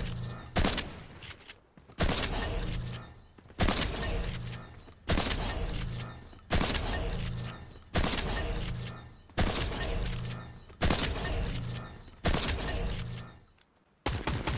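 A shotgun fires loud single blasts at a slow, steady pace.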